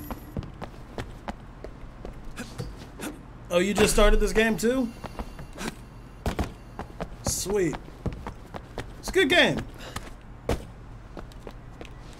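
Footsteps run quickly on a hard surface.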